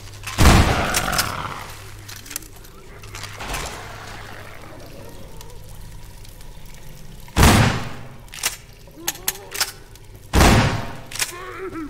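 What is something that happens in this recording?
A shotgun fires loud, booming blasts.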